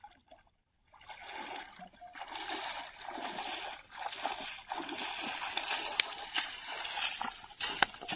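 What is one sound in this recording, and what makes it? A man wades quickly through shallow water, splashing loudly.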